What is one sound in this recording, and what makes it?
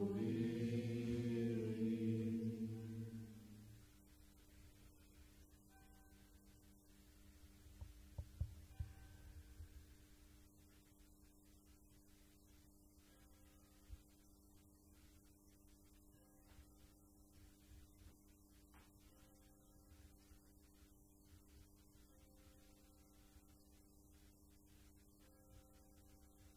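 A group of people hum a low, steady tone together.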